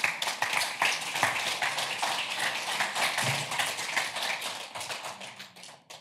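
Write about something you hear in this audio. An audience claps and applauds in a large room, then the applause fades.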